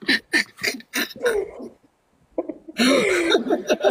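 A young woman laughs.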